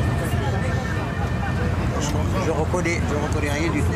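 An elderly man speaks calmly up close.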